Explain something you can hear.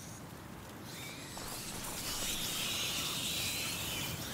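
A fire flares up and roars loudly.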